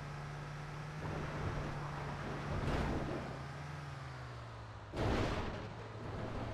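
A bus rattles and thumps over rough ground.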